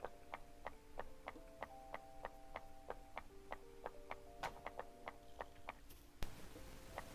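Short popping blips repeat quickly in a steady rhythm.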